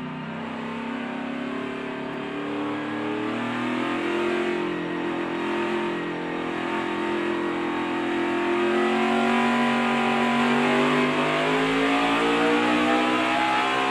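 Race car engines roar loudly at high speed, droning steadily and rising in pitch.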